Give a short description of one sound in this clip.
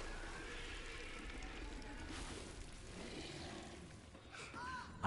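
A monster growls deeply.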